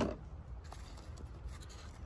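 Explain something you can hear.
A gloved hand rustles against a rubber hose.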